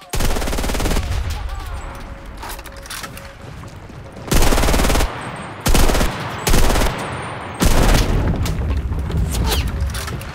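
A gun's magazine clicks and rattles as it is reloaded.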